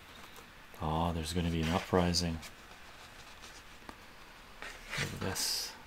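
Paper pages of a book rustle softly in someone's hands.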